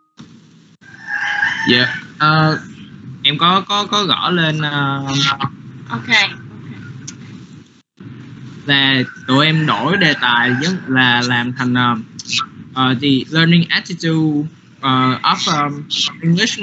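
A young woman speaks through an online call, with short pauses.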